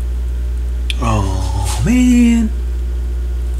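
A record plays a brief snatch of music that slides in pitch.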